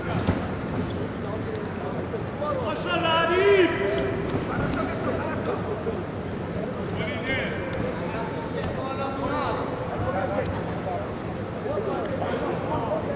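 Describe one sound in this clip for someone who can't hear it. Wrestlers' feet shuffle and thud on a mat.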